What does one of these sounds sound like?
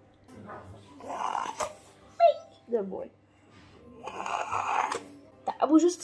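A woman sucks air sharply through a thin tube.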